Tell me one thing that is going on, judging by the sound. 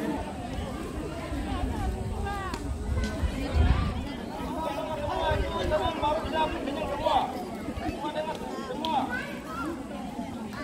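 A crowd of women and children chatter outdoors nearby.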